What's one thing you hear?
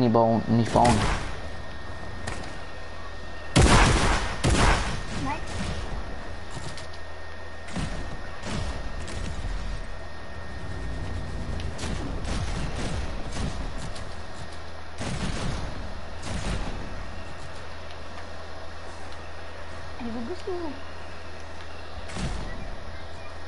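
Quick footsteps clang on a hard metal surface.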